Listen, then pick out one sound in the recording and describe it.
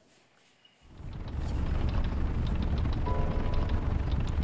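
A large flying machine's propellers whir with a steady low drone.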